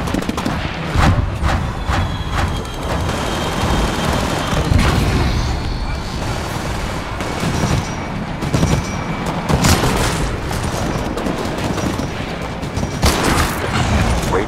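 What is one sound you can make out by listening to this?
Sniper rifle shots crack loudly now and then.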